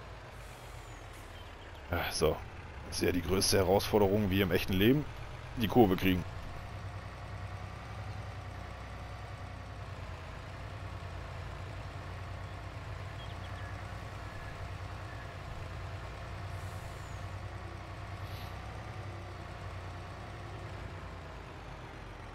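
A truck engine hums steadily as it drives along.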